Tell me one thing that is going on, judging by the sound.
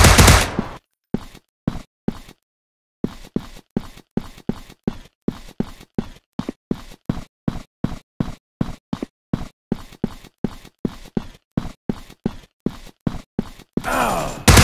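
A pistol fires in quick repeated shots.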